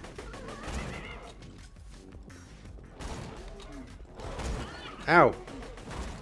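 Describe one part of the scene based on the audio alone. A rifle fires a burst of shots.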